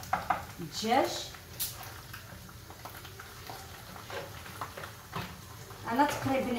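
Raw meat is scraped from a board into a hot pan.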